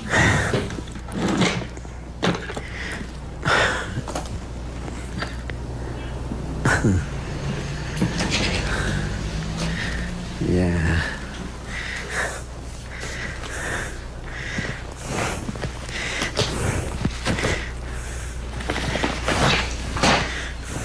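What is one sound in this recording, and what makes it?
A middle-aged man talks calmly, close by.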